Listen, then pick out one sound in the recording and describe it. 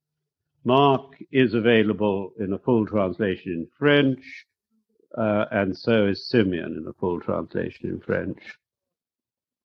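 An elderly man speaks calmly, heard through an old recording.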